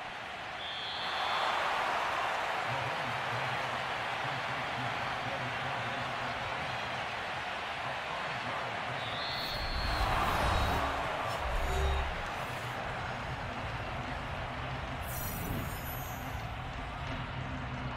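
A large crowd roars and cheers in a big echoing stadium.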